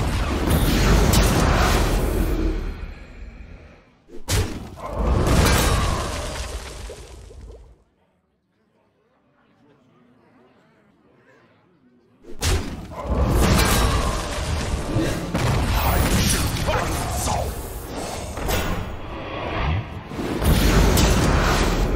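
Magical game sound effects whoosh and crackle in loud bursts.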